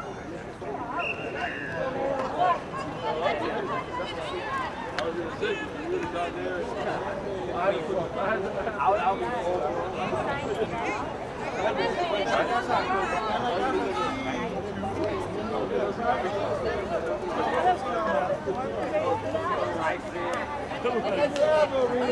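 Young players shout and call to each other across an open field outdoors.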